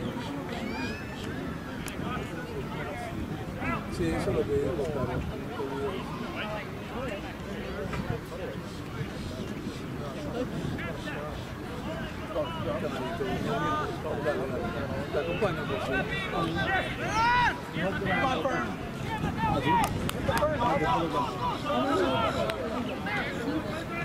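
Players shout short calls to each other across an open field.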